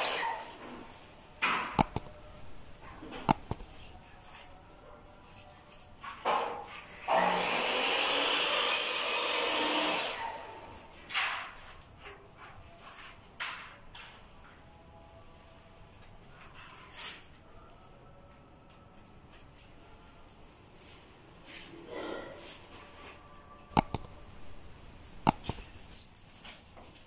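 Electrical wires rustle and scrape against a wall as they are pulled by hand.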